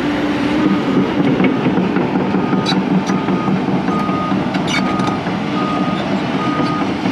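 A heavy diesel engine rumbles steadily.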